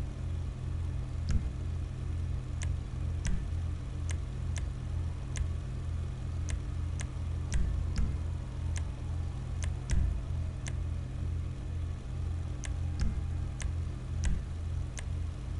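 A car engine idles with a low, throbbing rumble.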